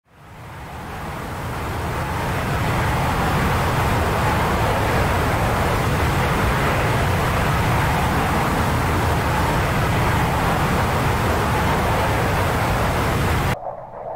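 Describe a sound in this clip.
A jet engine roars steadily with a deep rumble, fading in at the start.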